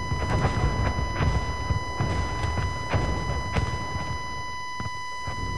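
Explosions rumble and boom in the distance.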